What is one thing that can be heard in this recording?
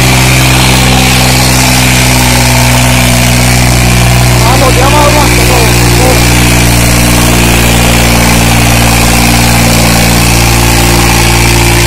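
A tractor's diesel engine rumbles steadily close by.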